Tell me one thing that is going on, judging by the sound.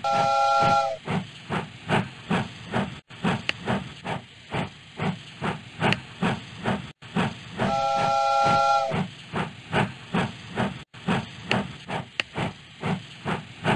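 A shovel scrapes and tosses coal in a quick, steady rhythm.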